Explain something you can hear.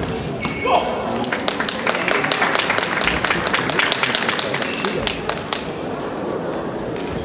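A crowd claps in a large echoing hall.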